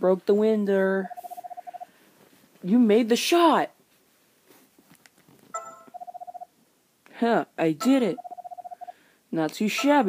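A handheld game console plays quick beeping blips as text scrolls.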